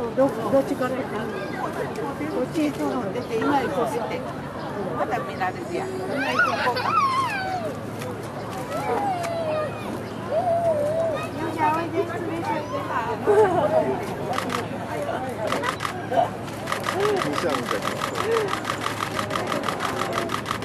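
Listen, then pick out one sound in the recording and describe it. A panda crunches and chews bamboo.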